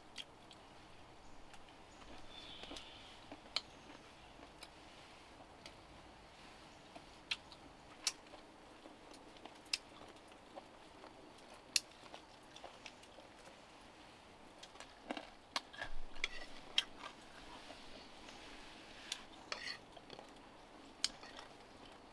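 A young woman chews and slurps food up close.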